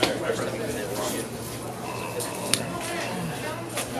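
A card is set down on a table with a soft tap.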